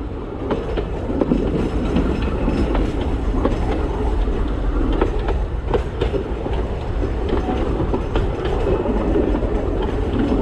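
Wheels click and squeal on the track joints.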